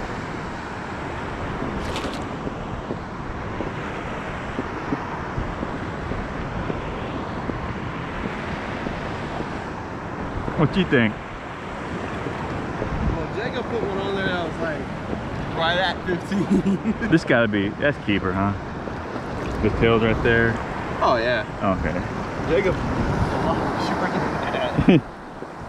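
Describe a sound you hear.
Water sloshes around wading legs.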